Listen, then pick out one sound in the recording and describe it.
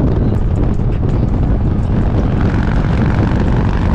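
A truck passes close by.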